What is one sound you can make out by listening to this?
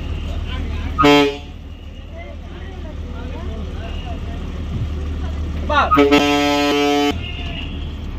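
A bus horn blares loudly in two blasts.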